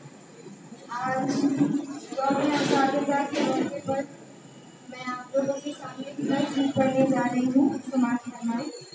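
A young woman speaks through a microphone and loudspeaker in a large echoing hall.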